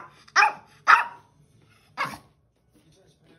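A small dog barks sharply a few times close by.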